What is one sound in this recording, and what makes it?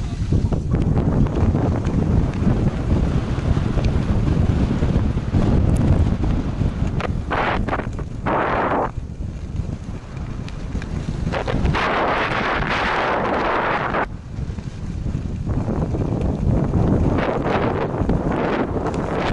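Wind rushes loudly past a skier moving fast downhill.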